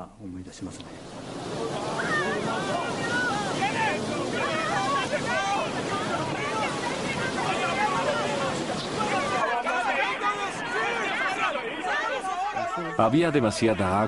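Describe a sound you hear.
Flood water rushes and churns loudly.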